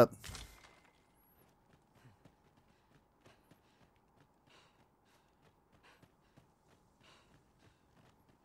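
Footsteps crunch softly on dirt and gravel.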